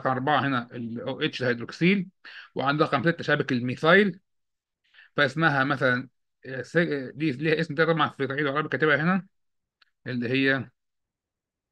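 A man speaks calmly over an online call, explaining.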